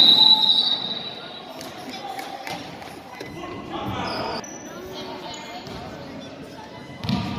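Sneakers squeak on a hard court in an echoing gym.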